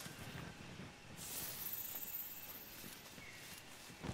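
A torch fire crackles softly.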